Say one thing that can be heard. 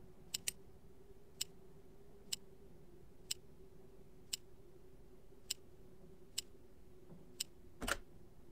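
A safe's combination dial clicks sharply, one click every second or so.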